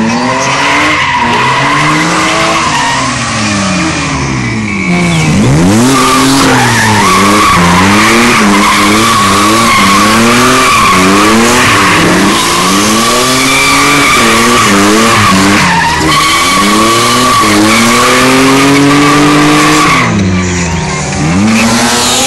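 A car engine revs hard up and down, close by.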